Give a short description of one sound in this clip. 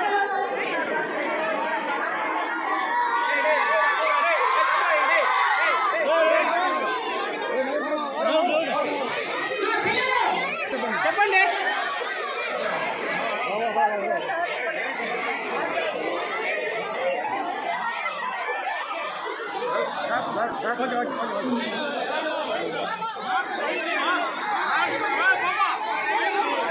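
A crowd of young girls shouts and chatters excitedly close by.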